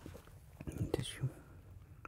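Paper crinkles and rustles close by.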